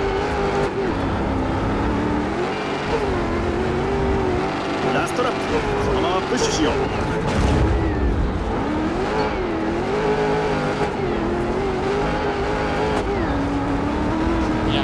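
A race car engine roars and revs up and down.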